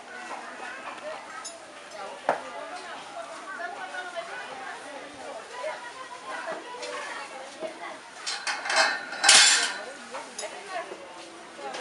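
A cow shifts its hooves on a rubber mat.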